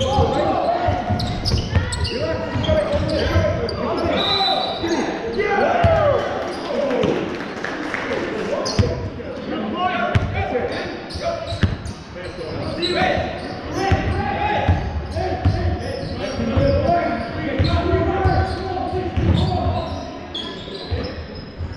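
Men shout and call out across the echoing hall.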